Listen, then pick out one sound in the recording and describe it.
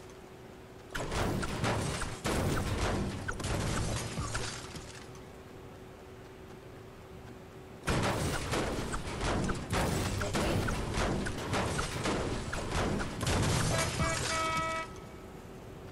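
A pickaxe clangs repeatedly against metal.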